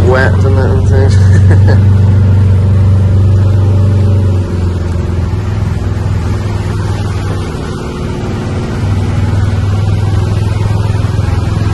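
A small vehicle's engine hums steadily as it drives.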